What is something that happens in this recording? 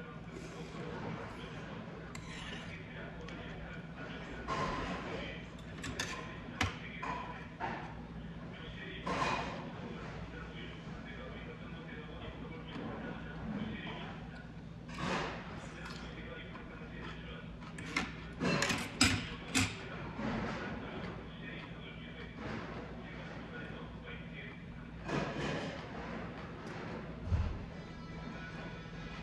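A man chews and slurps food up close.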